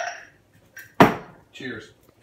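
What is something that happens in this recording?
A can knocks down on a hard counter.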